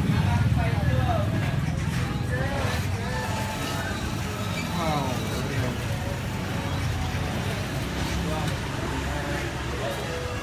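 A squeeze bottle sputters as sauce is pressed out.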